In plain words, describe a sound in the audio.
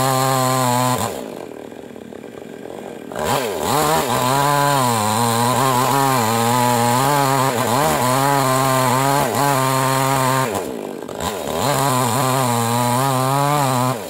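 A chainsaw engine roars close by, dropping briefly to a low idle now and then.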